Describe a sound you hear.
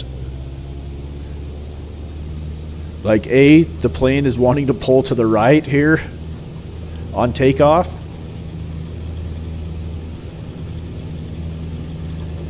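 A small plane's propeller engine drones steadily.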